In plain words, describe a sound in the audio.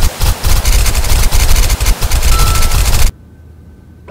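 Water sprays hard in a rushing hiss.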